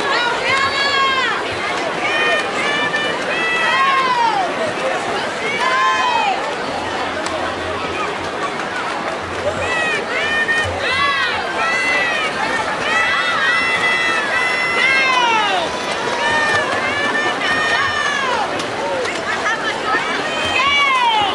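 Swimmers splash and churn through the water.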